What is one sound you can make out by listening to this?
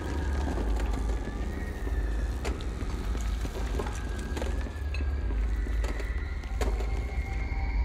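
A floating machine hums loudly with a deep drone.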